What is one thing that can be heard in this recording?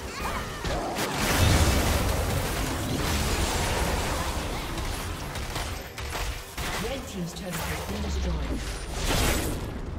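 Spells crackle and explode in a video game battle.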